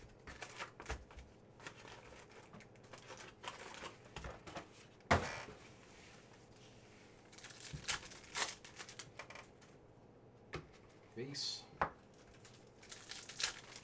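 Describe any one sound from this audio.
Foil wrappers crinkle and tear as packs are opened by hand.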